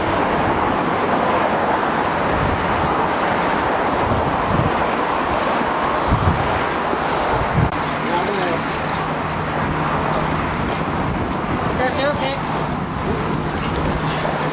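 Wind blows steadily across a microphone outdoors.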